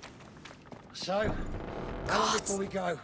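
Heavy wooden doors creak open.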